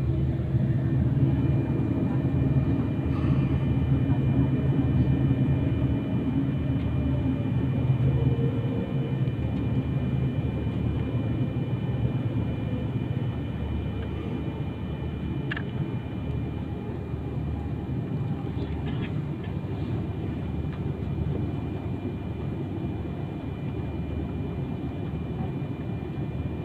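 Jet engines hum and whine steadily inside an aircraft cabin as it taxis.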